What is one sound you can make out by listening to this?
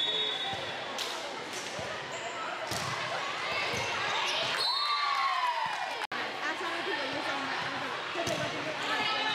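A volleyball is hit with a sharp smack.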